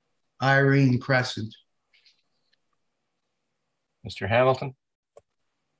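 An older man speaks in short bursts through an online call.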